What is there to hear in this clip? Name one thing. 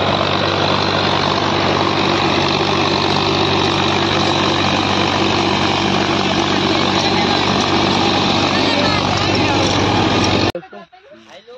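A diesel tractor engine labours under load, pulling a disc harrow.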